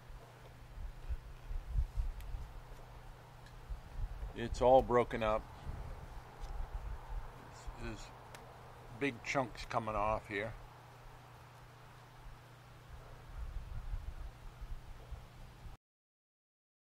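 An older man speaks calmly and close through a clip-on microphone.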